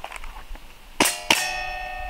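A pistol fires two sharp shots outdoors.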